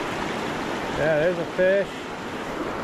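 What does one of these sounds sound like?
A fishing reel whirs briefly as line is wound in.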